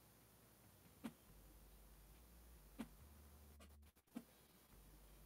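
Small objects knock and clatter as hands pick them up.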